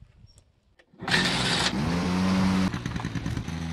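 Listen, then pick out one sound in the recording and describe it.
A quad bike engine runs loudly outdoors.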